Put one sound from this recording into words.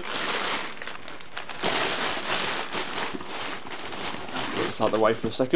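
Newspaper crinkles and rustles.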